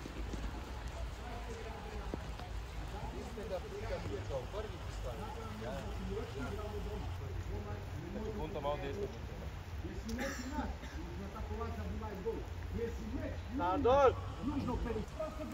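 Several men talk and call out to one another outdoors.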